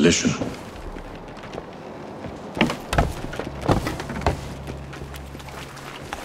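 Footsteps thud across wooden planks.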